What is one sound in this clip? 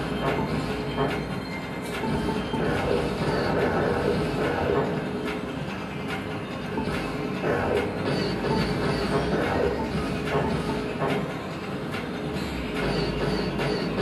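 Video game music plays loudly from a television.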